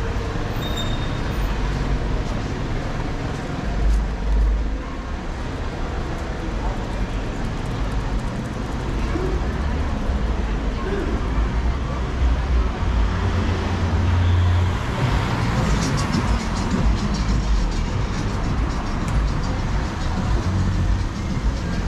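Footsteps tap on a paved sidewalk.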